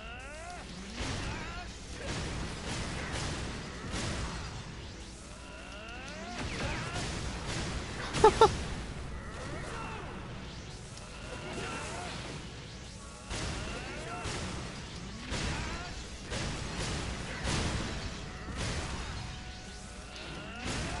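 Energy blasts boom and crackle again and again.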